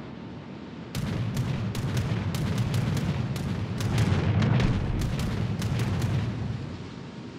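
Naval guns fire in a rapid series of booming shots.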